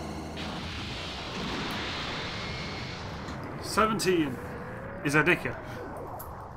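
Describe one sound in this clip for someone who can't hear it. An energy blast bursts with a loud roaring boom.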